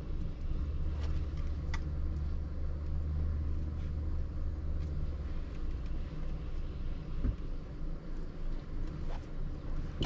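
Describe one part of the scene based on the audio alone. A plastic filter housing clicks and knocks as it is handled.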